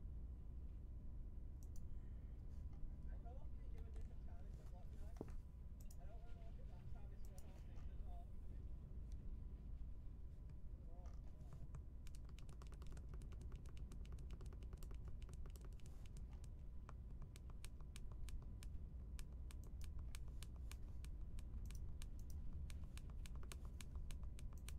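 Buttons on a handheld game console click under a thumb.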